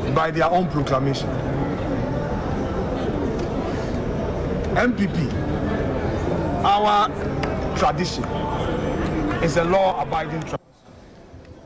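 A crowd murmurs in a large room.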